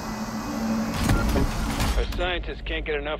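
A heavy metal door slides open with a loud clunk.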